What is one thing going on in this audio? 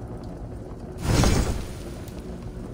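A low whoosh sweeps in as a menu opens.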